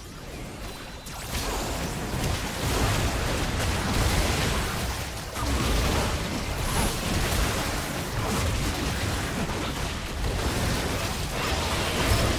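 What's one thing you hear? Magic spells and blows clash loudly in a video game battle.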